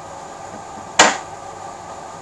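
A person sets something down on a table with a sharp knock.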